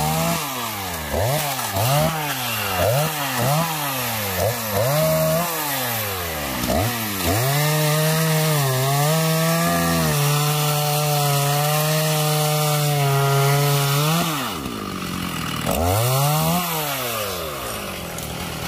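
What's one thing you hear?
A chainsaw revs up and down and whines steadily as it cuts through a log.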